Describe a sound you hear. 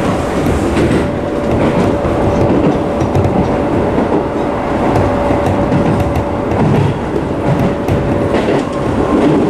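A train's motor whines with a steady tone.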